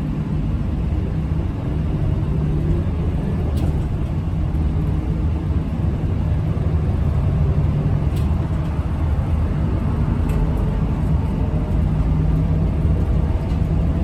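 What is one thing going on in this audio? A bus engine drones steadily from inside the cabin.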